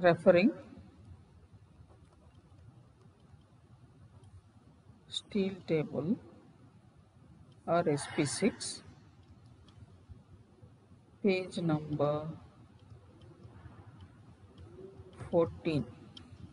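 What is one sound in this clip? A woman speaks slowly and calmly through a microphone, in short phrases with pauses.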